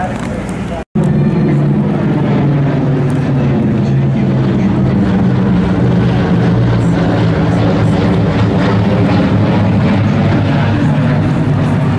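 Propeller engines drone loudly overhead as a large plane flies past.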